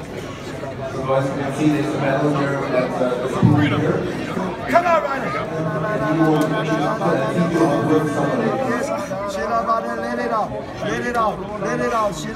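A man speaks loudly with emotion close by.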